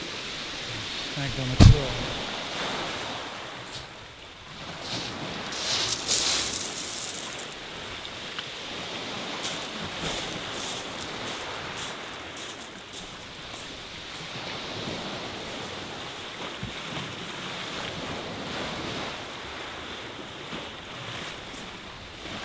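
Waves wash and break steadily against the shore.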